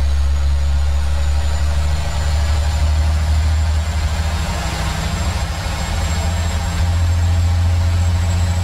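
A truck's diesel engine drones steadily from inside the cab.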